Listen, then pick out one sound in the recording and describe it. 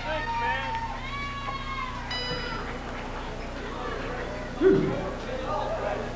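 A crowd of children and adults cheers and shouts in a large hall.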